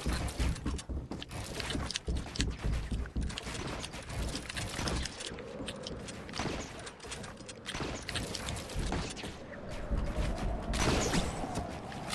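Rapid clicking thuds of building pieces snapping into place sound in quick succession.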